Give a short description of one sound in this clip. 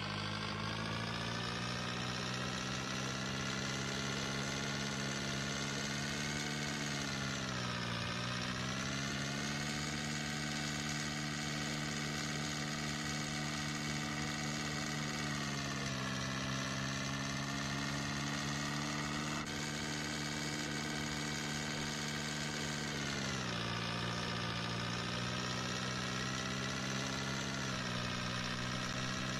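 An electric motor hums steadily, its pitch dipping now and then.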